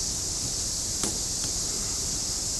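Pruning shears snip through a branch with a sharp click.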